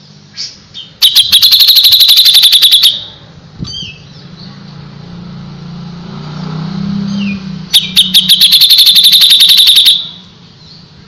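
A songbird sings rapid, loud chattering trills in short bursts.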